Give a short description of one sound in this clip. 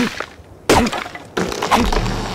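A hand thumps against a tree trunk.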